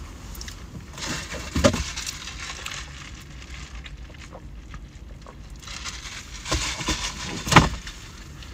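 A man slurps a drink through a straw.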